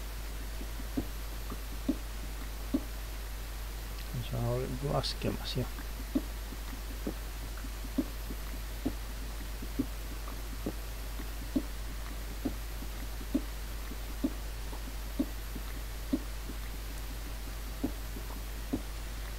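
A pickaxe chips at stone blocks with regular crunching knocks.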